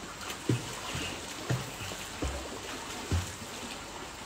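Bare feet thud on hard ground nearby.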